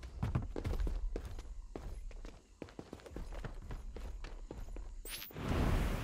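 Footsteps clank on a sheet-metal roof.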